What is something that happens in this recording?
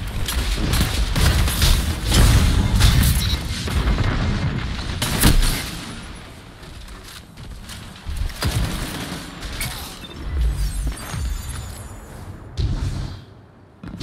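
Electric crackling bursts and sizzles.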